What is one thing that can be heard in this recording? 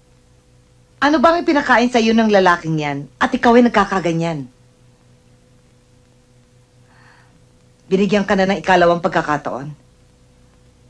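A woman speaks in a low, earnest voice close by.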